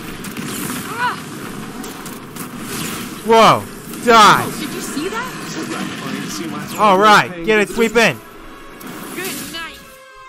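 A fiery explosion bursts with a deep boom.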